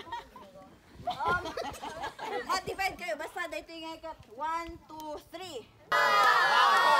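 A woman calls out with animation to a group.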